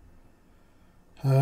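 An elderly man speaks close to a microphone.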